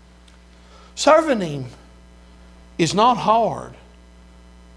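A man speaks into a microphone in short, emphatic bursts in a room with some echo.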